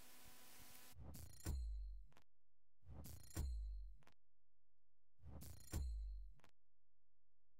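A game's award chime whooshes and ends in a deep booming thud, three times.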